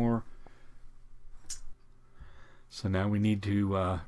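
Plastic game tokens click and slide on a board.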